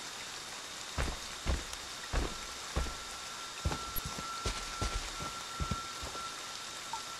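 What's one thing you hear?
Footsteps thud on the ground.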